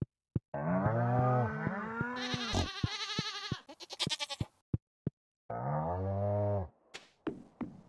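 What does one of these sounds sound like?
A cow moos in a low, drawn-out voice.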